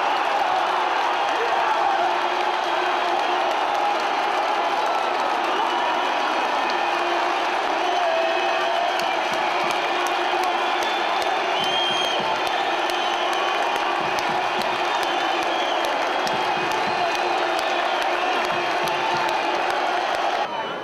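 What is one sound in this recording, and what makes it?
Many spectators whistle shrilly.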